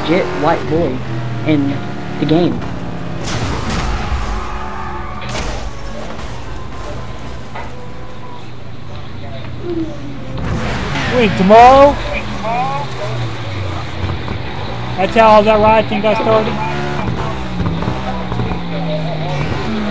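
A sports car engine roars and revs up and down as the car speeds along.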